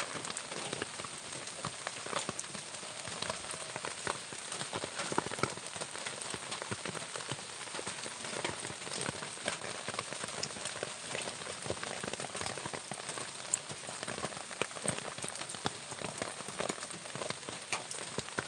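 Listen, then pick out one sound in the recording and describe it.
Rabbits shuffle and rustle through dry grass close by.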